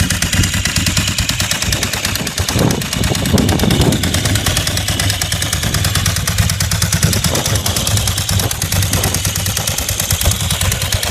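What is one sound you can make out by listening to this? A motorcycle engine idles close by with a rapid, steady rumble.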